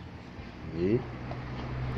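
Fingers press softly into loose soil.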